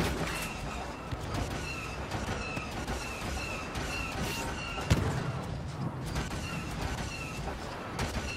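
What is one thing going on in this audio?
Blaster cannons fire in rapid repeated bursts.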